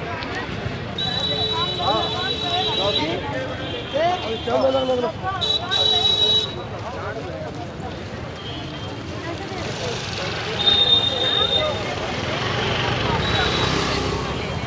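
Motorbike horns honk.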